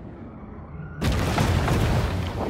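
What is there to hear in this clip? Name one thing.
Water splashes and churns loudly as a large creature bursts through the surface.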